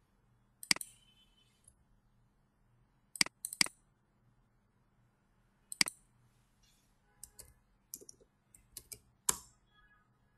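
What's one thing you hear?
A computer mouse clicks sharply a few times.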